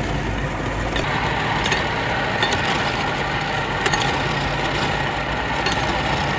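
A machine grinds and crushes ice with a steady whirr.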